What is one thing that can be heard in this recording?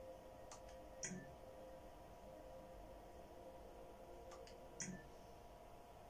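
A video game menu gives short electronic beeps as options are picked.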